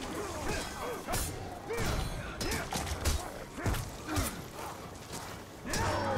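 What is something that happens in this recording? Warriors grunt and shout as they fight.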